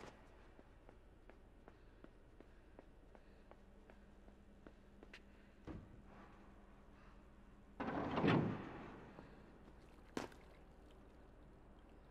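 Small footsteps tap steadily on a hard floor.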